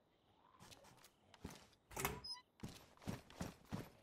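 A metal door swings open.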